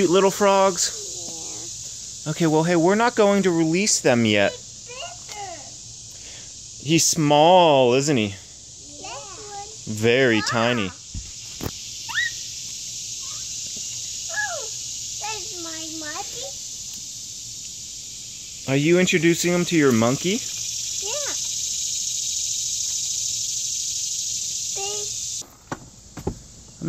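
A little girl talks and babbles close by in short bursts.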